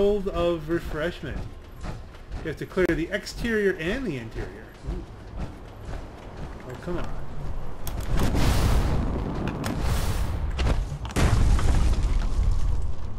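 Heavy armoured footsteps clank and thud on the ground.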